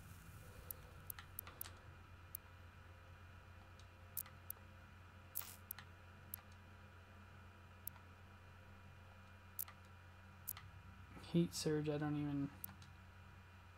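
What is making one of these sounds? Short electronic menu clicks sound now and then.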